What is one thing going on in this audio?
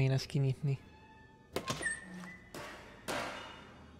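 A wooden cabinet door creaks open.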